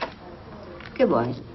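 An elderly woman speaks briefly.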